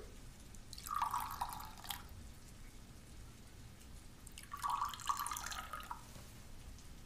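Tea pours and splashes into a small cup.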